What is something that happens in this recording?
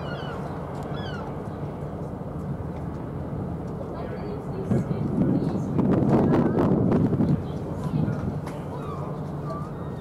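A large ship's engines rumble low and steady.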